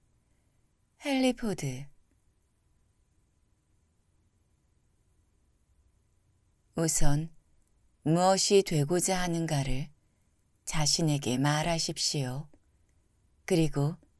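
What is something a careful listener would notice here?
A young woman reads out calmly into a close microphone, with long pauses.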